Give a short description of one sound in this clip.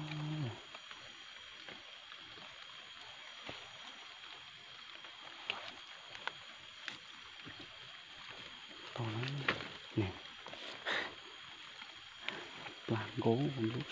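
Dry leaves rustle and crackle as hands push them aside.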